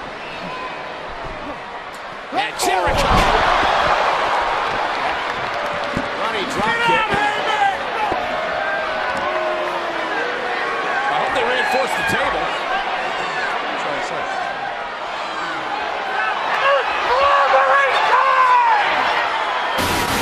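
A large crowd cheers loudly in a big echoing arena.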